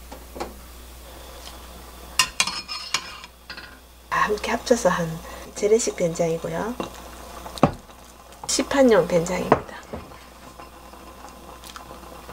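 A metal spoon clinks against a glass pot.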